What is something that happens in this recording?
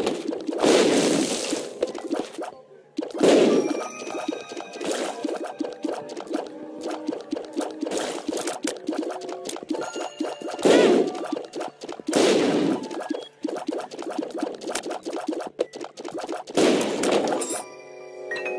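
Explosions boom again and again, each with a rumbling burst.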